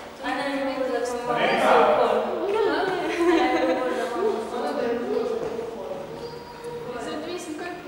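A young woman speaks and laughs close by.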